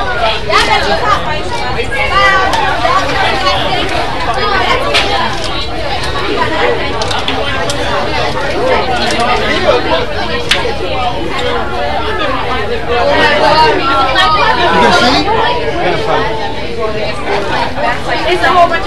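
Several teenage boys and girls chat nearby, overlapping each other.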